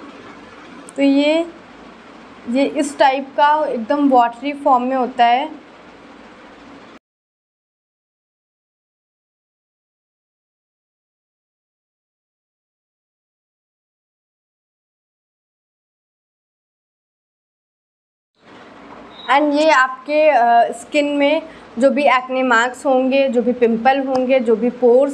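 A young woman talks calmly and close into a microphone.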